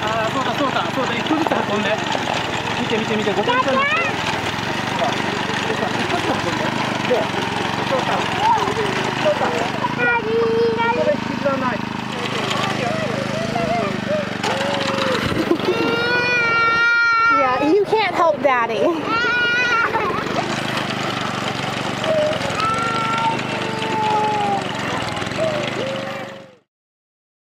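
The small petrol engine of a walk-behind rice binder runs as it cuts rice stalks.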